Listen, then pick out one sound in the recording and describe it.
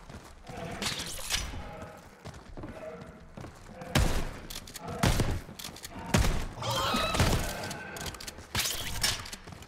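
A man talks with animation through a headset microphone.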